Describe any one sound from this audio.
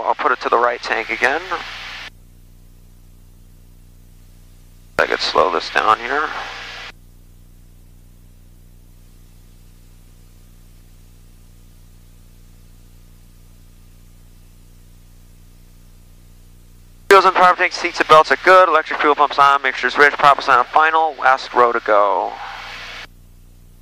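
A small plane's engine drones steadily throughout.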